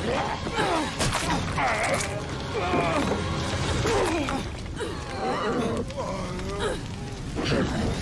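Men scream and shout in panic nearby.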